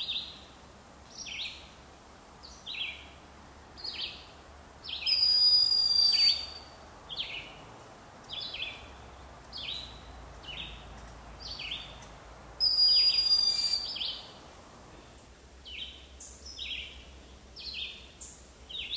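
A bird calls over and over with short, high, sharp chirps.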